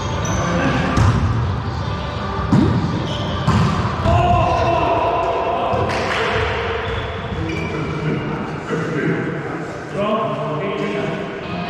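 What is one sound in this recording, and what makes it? Men call out and talk loudly to each other, echoing in a large hall.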